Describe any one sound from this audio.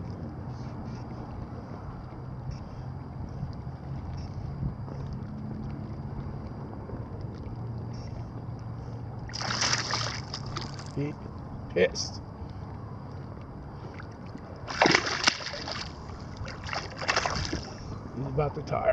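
Small waves lap and slosh against a boat.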